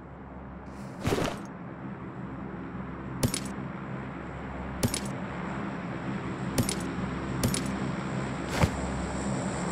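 Short clicks sound as items are picked up and moved.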